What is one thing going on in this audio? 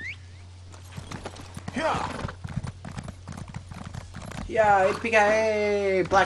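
A horse's hooves clop on stone at a gallop.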